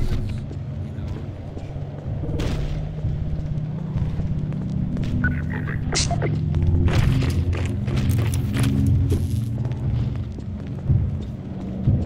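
Footsteps tread steadily on cobblestones.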